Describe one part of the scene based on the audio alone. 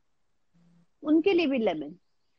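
A young woman answers calmly over an online call.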